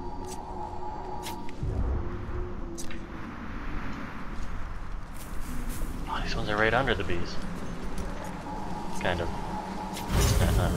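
Footsteps tread softly on stone.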